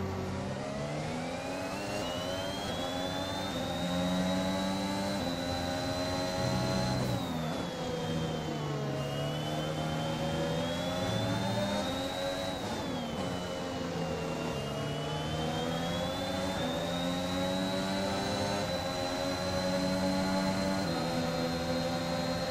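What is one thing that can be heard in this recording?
A Formula One car's engine shifts up and down through the gears.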